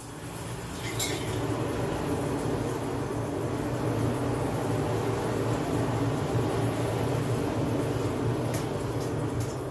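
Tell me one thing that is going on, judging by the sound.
Embers crackle and spit sparks in a forge.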